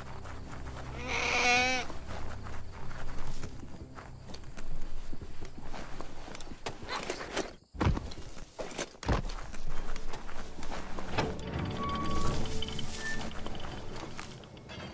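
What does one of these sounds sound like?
Footsteps patter quickly over grass and wet ground.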